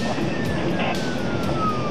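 A windscreen wiper swishes across the glass.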